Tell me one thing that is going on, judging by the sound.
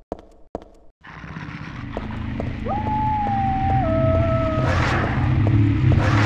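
A creature lets out a low, droning moan.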